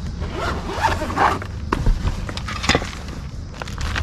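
A zipper case is unzipped.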